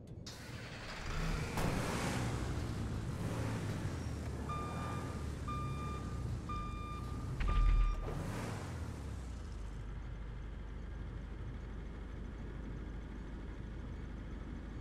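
A heavy armored vehicle's engine rumbles as it drives through a tunnel.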